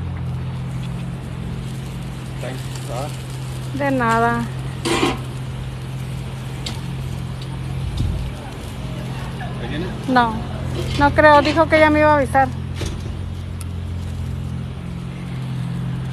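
A gas burner hums steadily and low.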